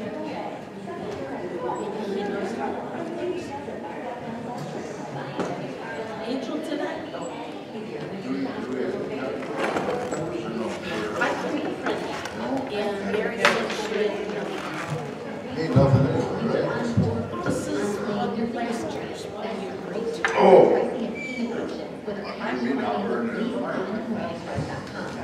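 Several adults talk quietly across a room.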